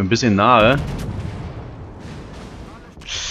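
Shells explode against a ship with a rumbling blast.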